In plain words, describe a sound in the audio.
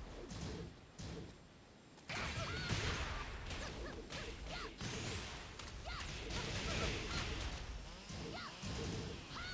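Electric zaps crackle and whoosh with each strike.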